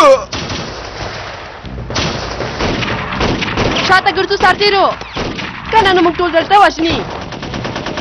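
A pistol fires a sharp shot.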